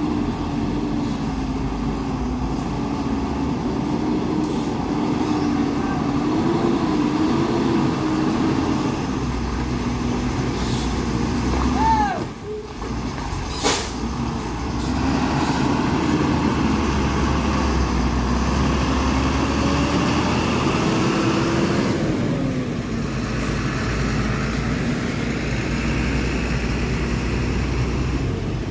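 A truck engine rumbles and strains nearby.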